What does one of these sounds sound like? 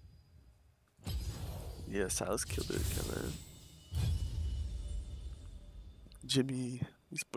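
A game's interface plays a soft whooshing swell and chime.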